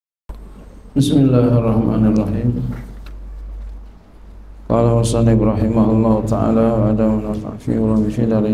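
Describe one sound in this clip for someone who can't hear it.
A man speaks into a microphone with animation, in an echoing room.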